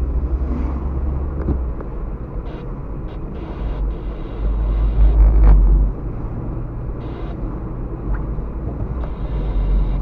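A car's engine hums steadily from inside the cabin while driving.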